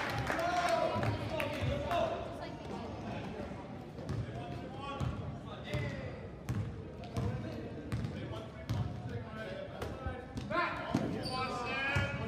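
Young players and spectators shout and call out in an echoing gym.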